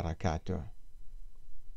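An elderly man speaks calmly into a handheld microphone.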